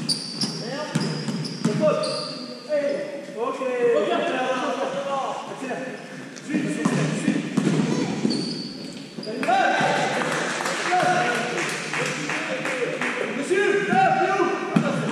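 Young men shout to each other in a large echoing hall.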